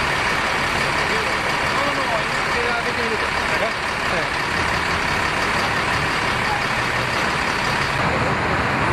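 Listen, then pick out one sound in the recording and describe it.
A bus engine idles at the curb.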